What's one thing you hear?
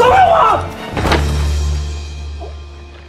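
A body thuds onto the ground.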